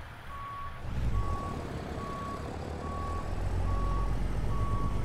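A fuel pump beeps in short, even repeats.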